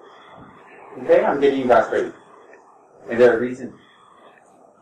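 A man speaks calmly and slowly into a close microphone.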